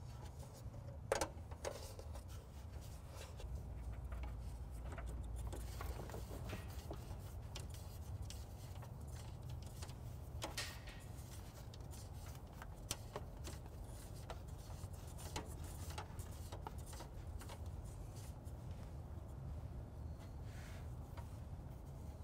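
Thin metal lines and plastic clips click and rattle as hands handle them.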